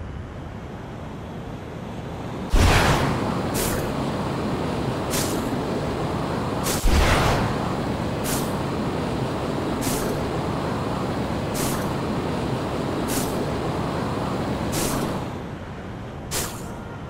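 A jet thruster roars steadily.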